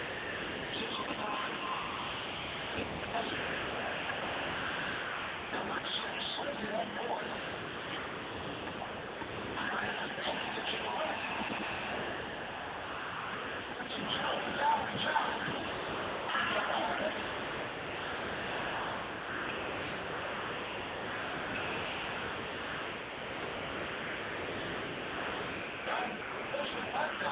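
A video game's fight sounds play through a television speaker, with blasts and hits.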